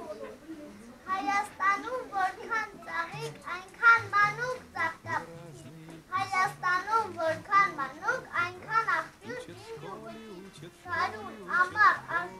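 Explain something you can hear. A young girl recites loudly in a high voice.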